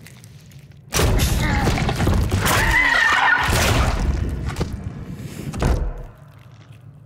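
Wet flesh squelches and tears loudly.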